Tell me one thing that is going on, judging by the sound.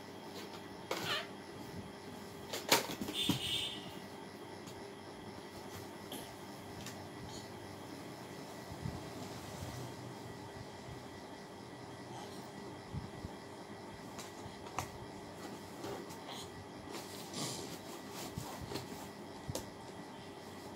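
Toys and a doll thump softly on a bed.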